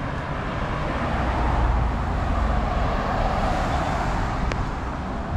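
A car drives past close by.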